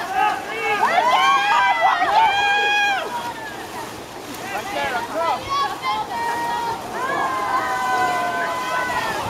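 Water splashes as swimmers kick and stroke.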